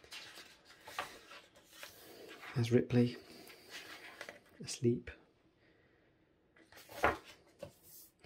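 Stiff book pages rustle and flap as they turn.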